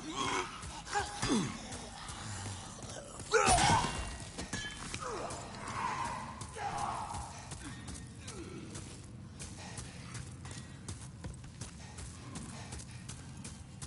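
Footsteps crunch on a stone floor.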